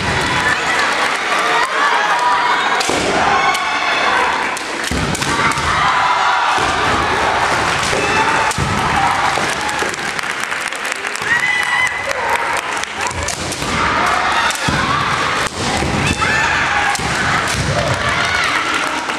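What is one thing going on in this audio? Young fencers let out loud, drawn-out battle cries that echo around a large hall.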